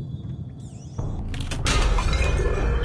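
Glass cracks sharply.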